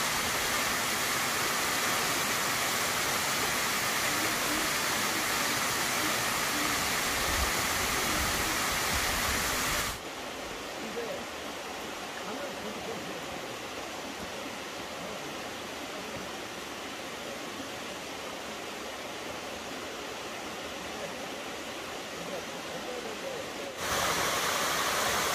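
A waterfall rushes and splashes steadily.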